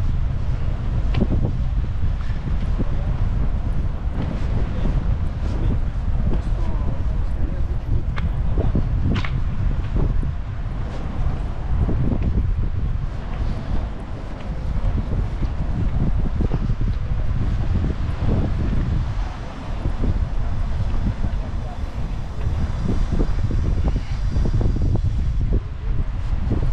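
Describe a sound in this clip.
Wind buffets steadily outdoors.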